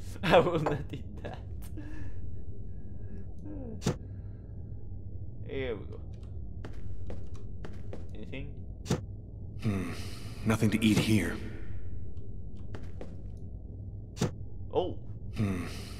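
A young woman speaks calmly and quietly.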